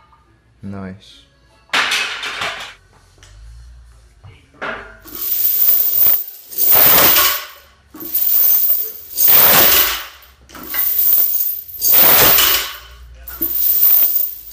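A loaded barbell thuds down.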